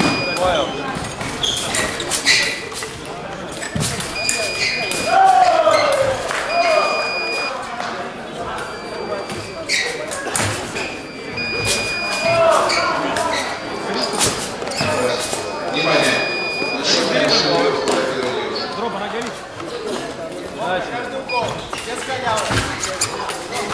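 Fencers' shoes tap and scuff on the floor.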